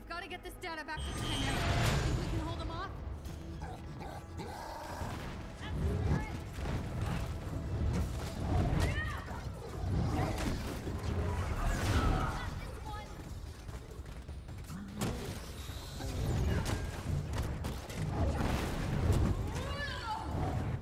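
Punches and blasts thud heavily in a game fight.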